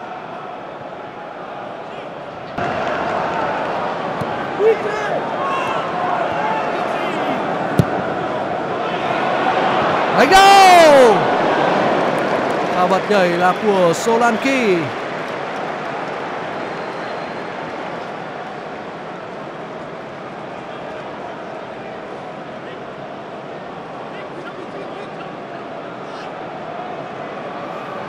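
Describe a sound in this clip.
A large stadium crowd roars and cheers, swelling loudly and then fading.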